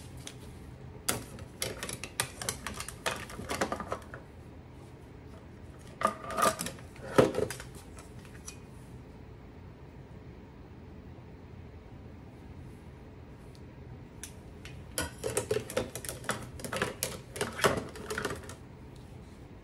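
Plastic and metal kitchen utensils clatter and rattle in a drawer.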